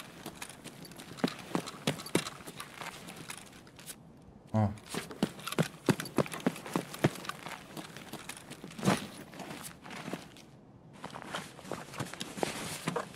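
A man talks into a microphone, close up.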